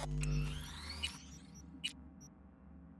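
Short electronic menu clicks sound.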